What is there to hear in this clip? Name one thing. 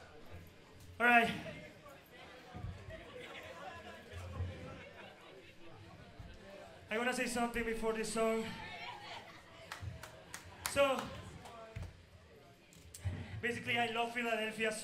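A young man shouts and sings hoarsely into a microphone over loudspeakers.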